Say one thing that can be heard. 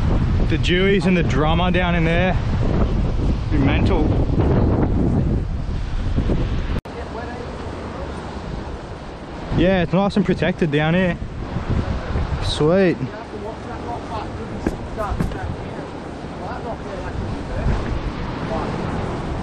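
Wind blows hard outdoors, rumbling across the microphone.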